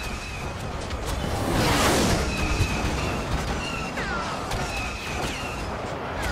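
Explosions boom in the distance.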